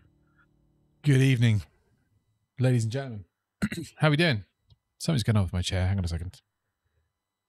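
A man speaks with animation close into a microphone.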